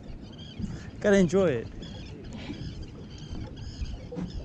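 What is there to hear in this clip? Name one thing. A fishing reel whirs as its line is wound in.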